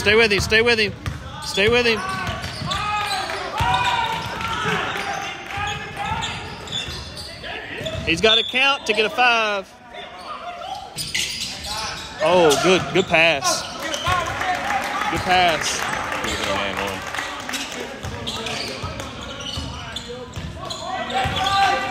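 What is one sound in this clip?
Young men shout and call out on a court in a large echoing gym.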